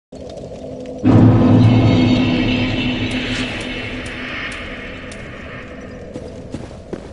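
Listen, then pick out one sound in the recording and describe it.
A deep rumbling boom swells up and slowly fades.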